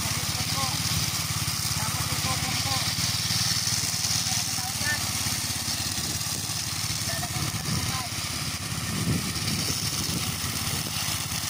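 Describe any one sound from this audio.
A small petrol engine runs with a steady, rattling drone.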